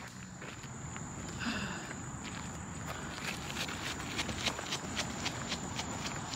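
Footsteps tap on a paved path.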